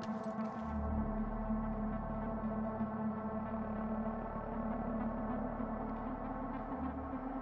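Footsteps crunch over scattered debris on a hard floor.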